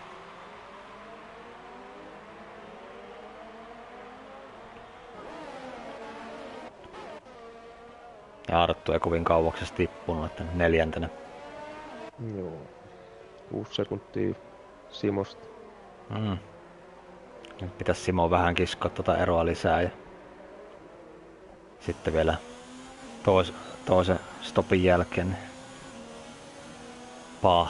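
Racing car engines whine at high revs, rising and falling as cars pass.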